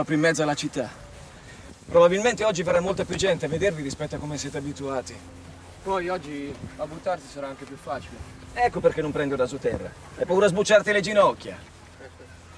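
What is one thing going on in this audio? A middle-aged man talks calmly and close by, outdoors.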